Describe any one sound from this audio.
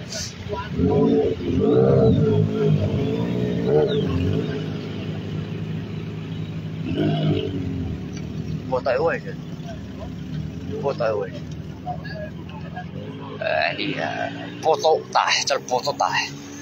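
Cars pass by on a road nearby.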